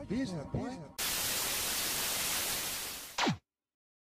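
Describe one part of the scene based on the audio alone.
Loud television static hisses.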